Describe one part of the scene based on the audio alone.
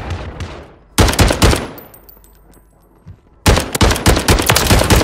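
A rifle fires rapid shots in short bursts.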